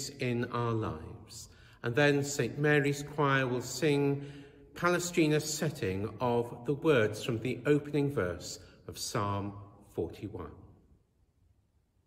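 A middle-aged man speaks calmly and clearly into a microphone, in a large echoing hall.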